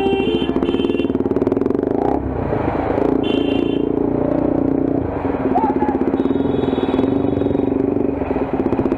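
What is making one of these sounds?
A motorcycle engine runs with a steady, throbbing rumble close by.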